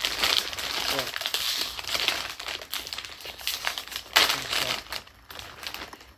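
A plastic chip bag crinkles and tears open.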